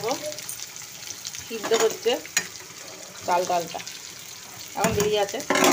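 A metal lid clinks against a pot.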